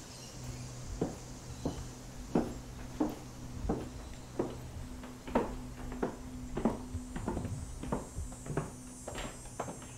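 Footsteps thud on a wooden floor at a steady walking pace.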